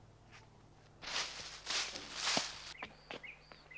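Dry leaves crunch and rustle underfoot.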